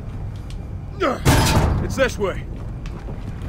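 A heavy metal door scrapes and clanks open.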